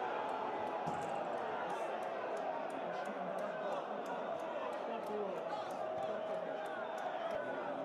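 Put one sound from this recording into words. Young men shout and cheer in celebration some distance away.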